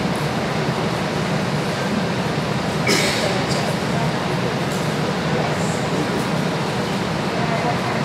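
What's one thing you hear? An elderly man speaks aloud to a gathered crowd.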